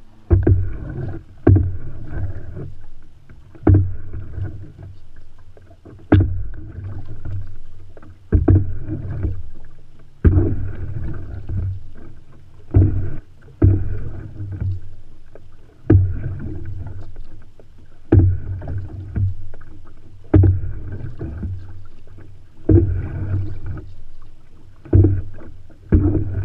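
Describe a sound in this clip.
A paddle splashes and pulls through water in a steady rhythm.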